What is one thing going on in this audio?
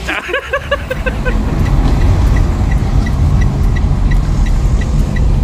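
A car engine rumbles low while driving.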